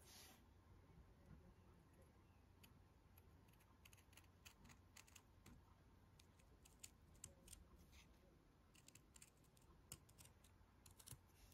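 Scissors snip through felt with short crisp clicks.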